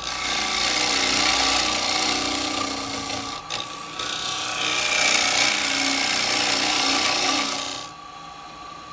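A chisel cuts into spinning wood with a loud hissing scrape.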